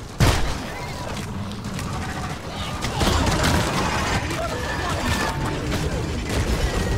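A heavy gun fires in rapid bursts with sharp crackling blasts.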